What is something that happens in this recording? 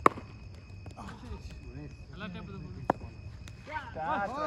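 Young men call out to each other in the distance, outdoors.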